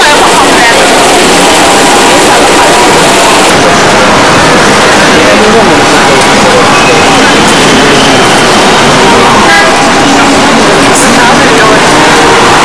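A crowd of people chatters on a busy street.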